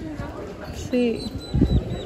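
Women talk nearby outdoors.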